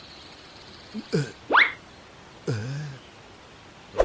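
A young male voice cries out in a frightened, wavering tone.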